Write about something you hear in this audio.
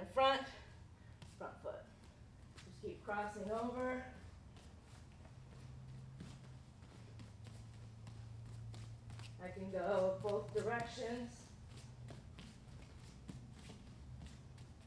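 Bare feet shuffle and tap softly on a mat.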